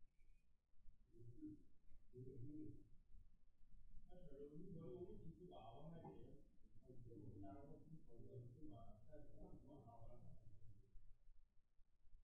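A man lectures calmly through a microphone in an echoing room.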